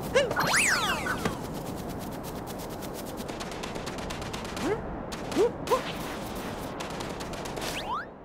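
Quick footsteps patter over grass and sand.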